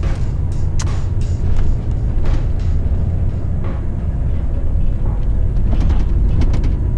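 Small items rattle and click in the cab as the truck drives over the road.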